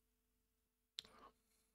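A man breathes out with satisfaction close to a microphone.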